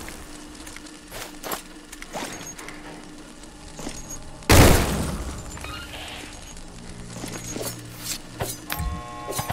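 Footsteps clatter on a hard metal floor.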